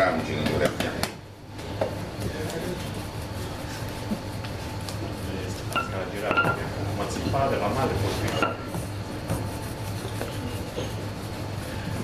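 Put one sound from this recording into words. Hands knead and slap dough.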